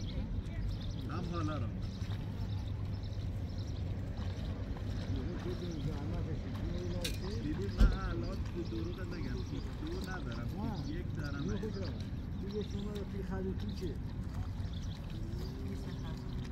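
Water splashes softly as seedlings are pushed into a flooded field.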